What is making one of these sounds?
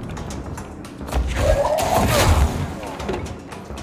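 Debris crashes and clatters loudly.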